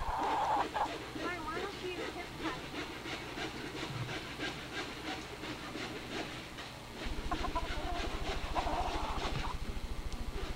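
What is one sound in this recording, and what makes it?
A young boy talks nearby.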